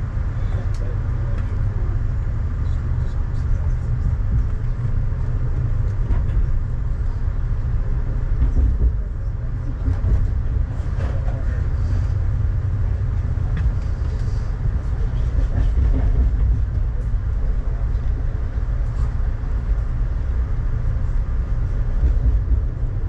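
Rain patters lightly on a window.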